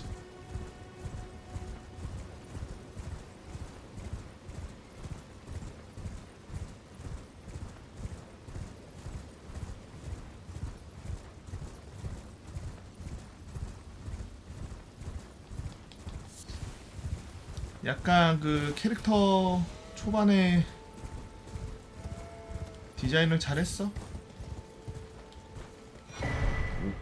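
Hooves gallop steadily over soft ground.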